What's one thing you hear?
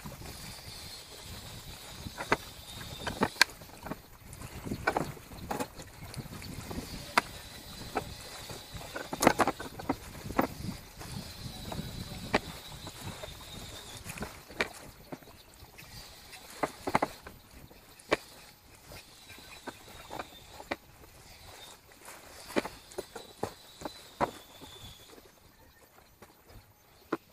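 A hatch cover knocks and clunks against a boat's deck.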